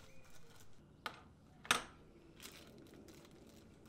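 Plastic parts clack together.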